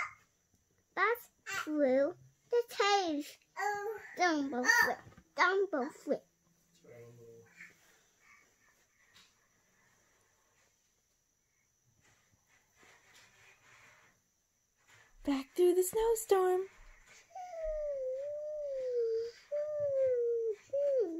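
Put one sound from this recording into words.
A young child talks with animation close by.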